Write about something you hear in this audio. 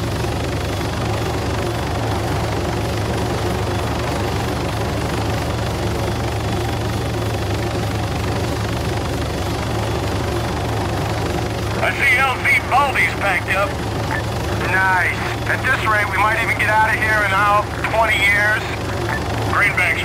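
A helicopter engine drones steadily with its rotor thumping.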